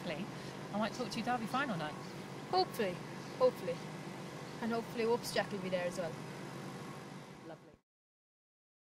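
A woman speaks cheerfully into a microphone close by.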